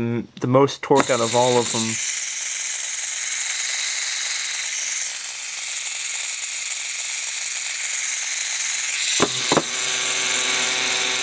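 A small electric motor whirs with a steady high hum.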